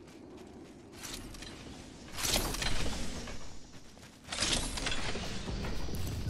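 A metal crate slides open with a whoosh.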